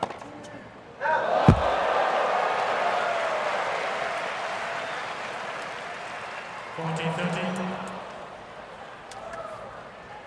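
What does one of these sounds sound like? A large crowd cheers and applauds loudly, then slowly dies down.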